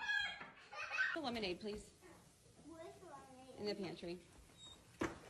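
A young girl talks.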